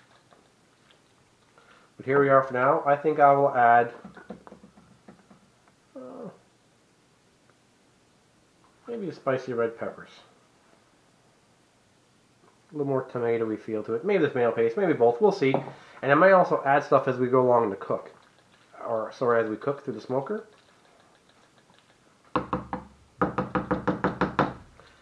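A wooden spoon scrapes and stirs through a thick stew in a pot.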